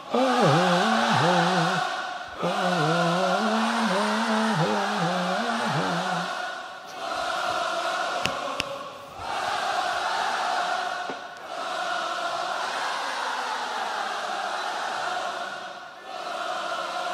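A large crowd cheers and roars at a concert.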